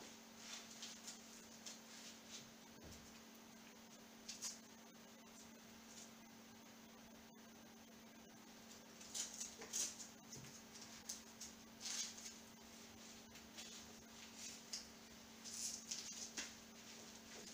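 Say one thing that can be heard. A fabric strap rustles and velcro rasps as a wrist is wrapped.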